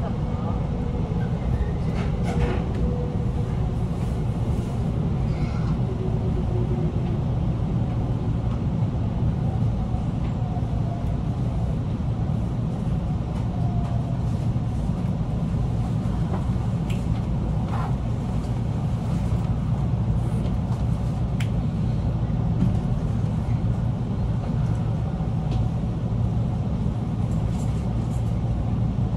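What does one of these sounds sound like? An electric train rumbles along the rails, heard from inside the carriage.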